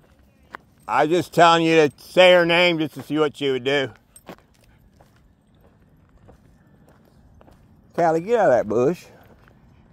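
A dog barks and whines nearby.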